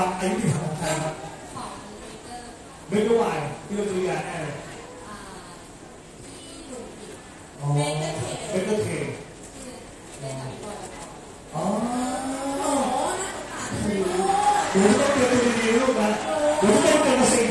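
A young woman speaks into a microphone over loudspeakers outdoors.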